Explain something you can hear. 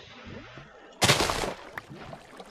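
Crops are broken with soft rustling pops.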